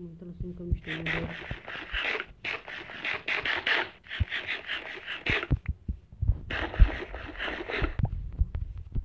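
Leafy blocks crunch and rustle in quick bursts as they break.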